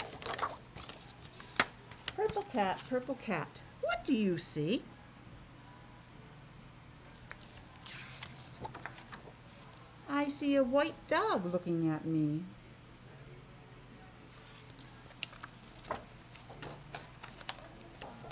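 Laminated book pages rustle and click as they turn.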